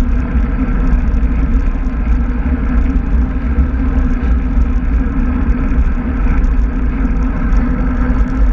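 Wind buffets loudly and steadily, as if rushing past a moving bicycle.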